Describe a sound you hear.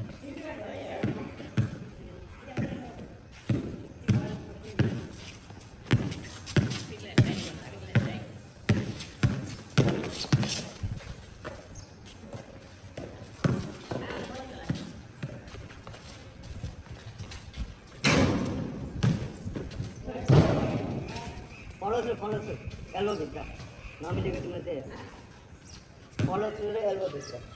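A basketball bounces repeatedly on a hard outdoor court.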